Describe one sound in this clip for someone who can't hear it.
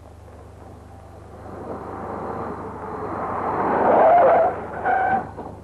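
A car engine approaches and grows louder.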